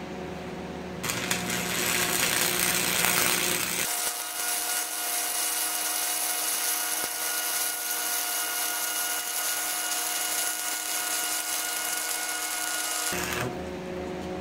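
An electric welding arc crackles and hisses steadily.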